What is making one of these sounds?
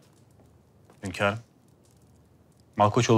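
A man announces in a formal, raised voice.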